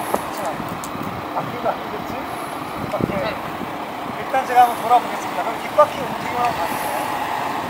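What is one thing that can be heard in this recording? Several people chat nearby outdoors.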